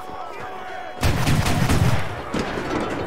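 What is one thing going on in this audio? A heavy gun fires with a loud boom.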